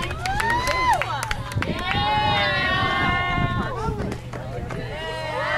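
A group of young women chant and cheer together outdoors.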